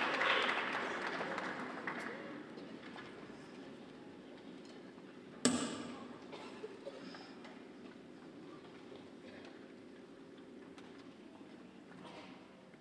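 An orchestra plays softly in a large echoing hall.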